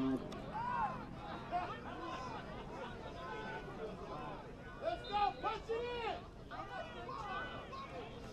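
Young men shout calls loudly outdoors.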